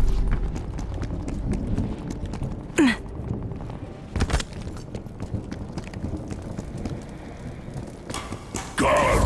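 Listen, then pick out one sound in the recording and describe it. Footsteps run quickly over hard pavement.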